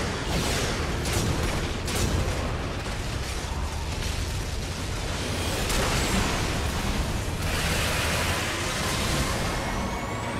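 Missiles whoosh and hit with loud blasts.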